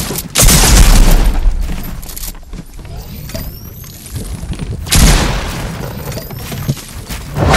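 Wooden walls and ramps are placed with quick clattering knocks.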